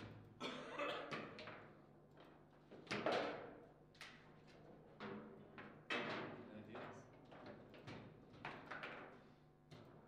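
A ball knocks sharply against plastic figures and the walls of a table football game.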